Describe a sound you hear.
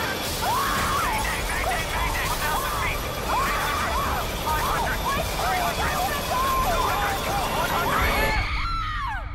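A young woman cries out in panic close by.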